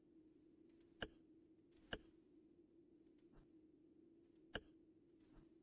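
A dial clicks as it is turned.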